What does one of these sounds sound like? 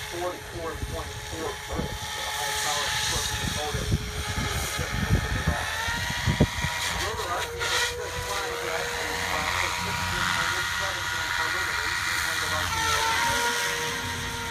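A model airplane engine whines steadily, rising and falling in pitch as it passes.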